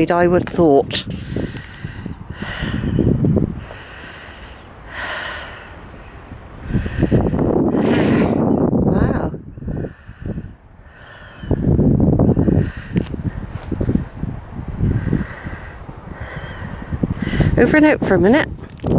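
Wind gusts roughly across the microphone outdoors.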